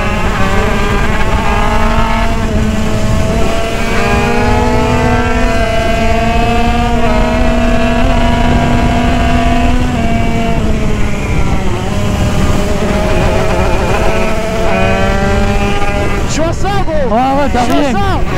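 A motorcycle engine roars steadily up close, its pitch rising and falling as it shifts gears.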